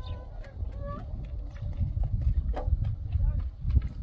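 A rooster clucks nearby.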